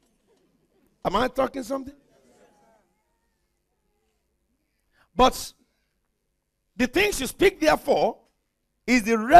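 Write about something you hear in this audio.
An elderly man preaches with animation through a microphone in a large hall.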